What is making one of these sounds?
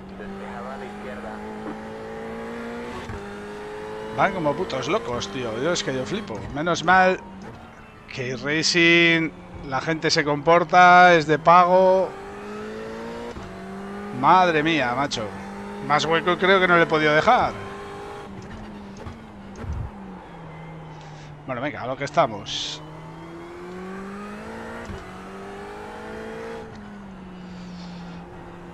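A racing car engine drones and rises in pitch through gear changes.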